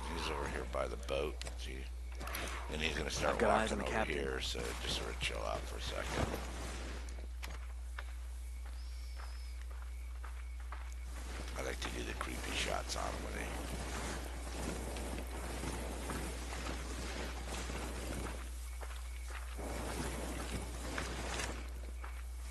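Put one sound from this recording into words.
Leaves and branches brush and rustle against clothing.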